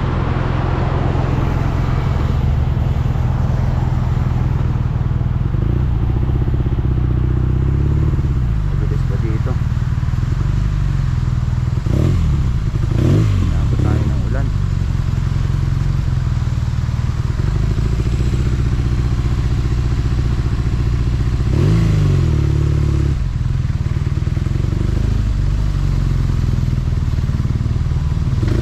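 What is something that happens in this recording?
A motorcycle engine rumbles steadily, close by, and rises and falls in pitch as it slows and speeds up.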